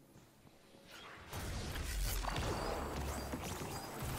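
A heavy gun fires in rumbling blasts.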